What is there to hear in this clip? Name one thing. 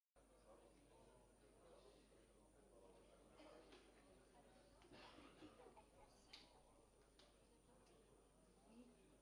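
A crowd of people murmurs and chatters in a large hall.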